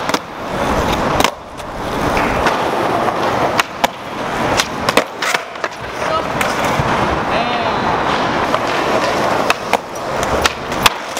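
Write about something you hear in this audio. A skateboard deck clacks and slaps against concrete.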